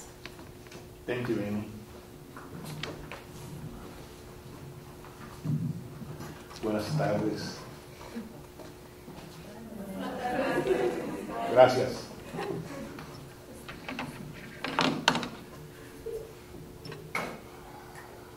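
An elderly man speaks calmly into a microphone, pausing often.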